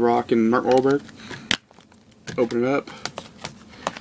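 A plastic disc case clicks open.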